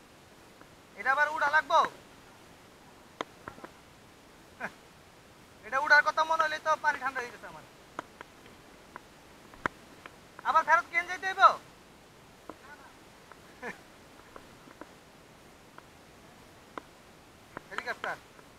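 A young man shouts loudly outdoors, in short calls.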